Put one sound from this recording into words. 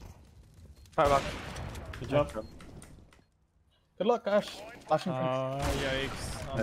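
A sniper rifle fires loud shots.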